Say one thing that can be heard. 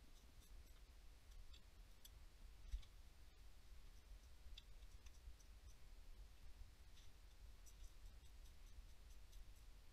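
Small metal parts clink and tap against each other.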